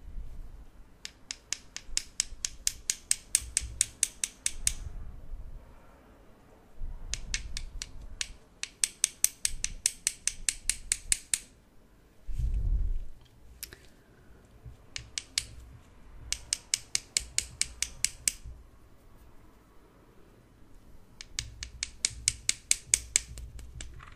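Small metal tweezers click rapidly together close by.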